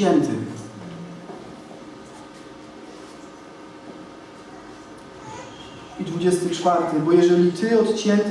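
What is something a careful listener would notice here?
A young man speaks calmly into a headset microphone, reading out.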